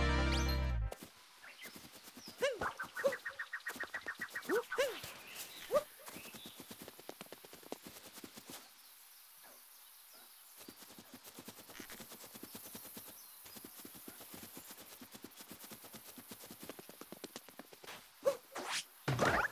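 Quick light footsteps patter on grass.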